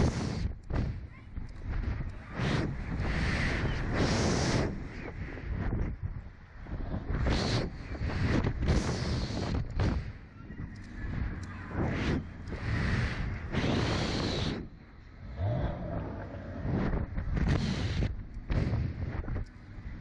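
Two young girls scream and squeal close by.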